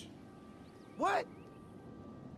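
A man asks a short, surprised question.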